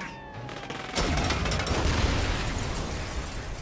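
A car explodes with a loud boom.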